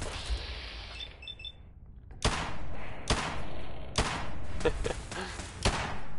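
A laser gun zaps in quick, sharp bursts.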